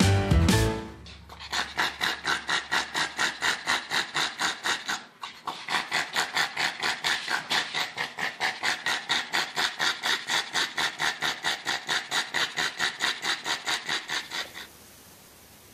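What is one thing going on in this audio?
A small dog pants quickly and loudly.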